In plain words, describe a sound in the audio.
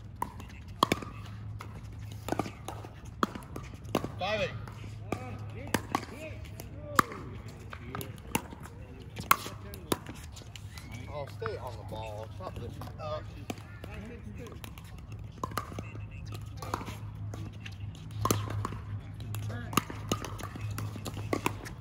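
Paddles sharply pop against a plastic ball, back and forth.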